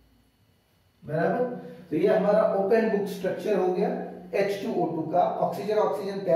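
A man speaks calmly nearby, as if lecturing.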